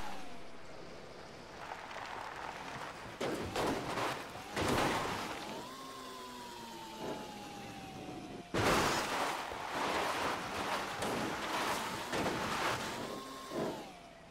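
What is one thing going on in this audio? A small electric cart whines as it drives over rough ground.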